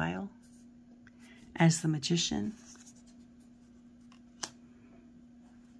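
Playing cards slide and rustle softly in a hand.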